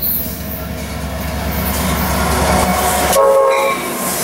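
A diesel passenger locomotive rumbles past close by.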